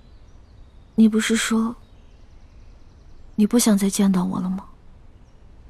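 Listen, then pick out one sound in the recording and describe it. A young woman speaks softly and questioningly, close by.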